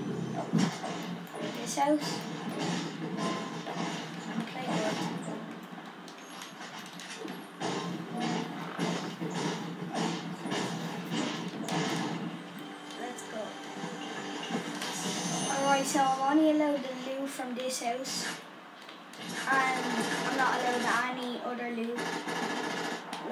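Video game sound effects play from a television speaker, with sharp hits and thuds.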